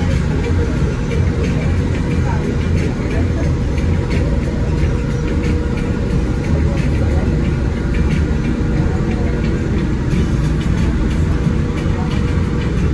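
Wind buffets the microphone steadily, high up outdoors.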